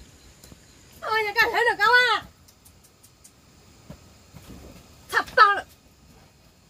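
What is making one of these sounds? A young child calls out in a high voice nearby.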